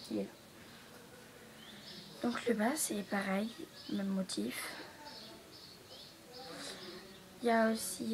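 A girl talks calmly and close by.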